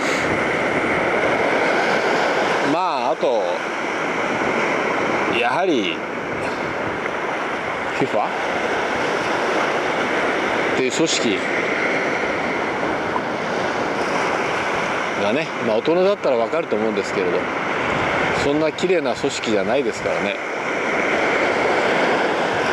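Waves wash steadily onto a beach nearby.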